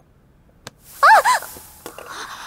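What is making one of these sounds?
A young woman cries out sharply.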